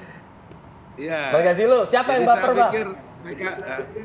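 A woman laughs close to a microphone.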